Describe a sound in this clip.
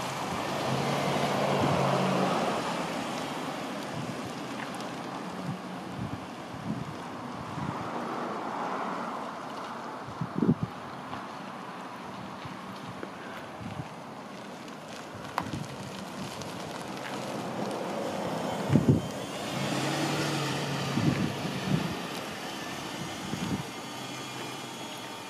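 Tyres roll over pavement.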